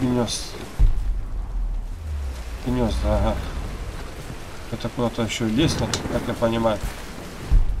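Heavy rain pours steadily outdoors.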